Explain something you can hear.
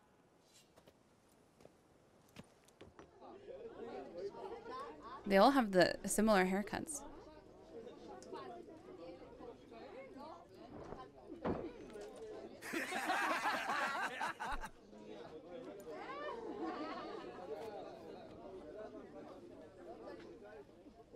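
A young woman speaks quietly into a microphone.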